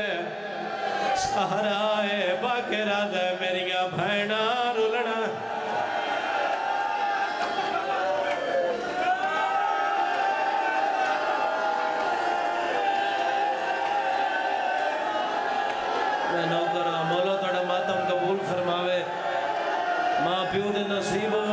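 A man chants a lament loudly through a microphone and loudspeakers.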